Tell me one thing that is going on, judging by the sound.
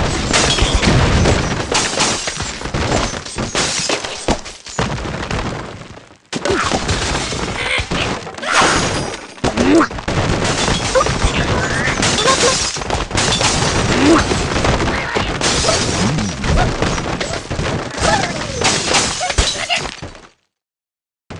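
Blocks crash and shatter over and over, with bursts of game sound effects.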